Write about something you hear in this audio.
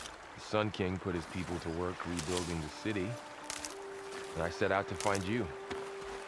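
Water flows and splashes over stones in a stream.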